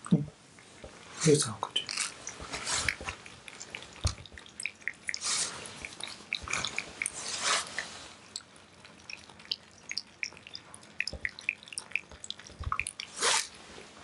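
Cats lap and chew food noisily from bowls.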